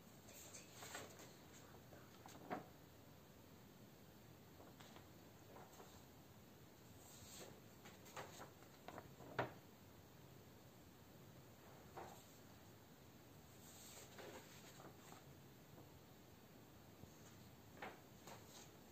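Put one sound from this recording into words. Sheets of paper rustle and flap as they are handled.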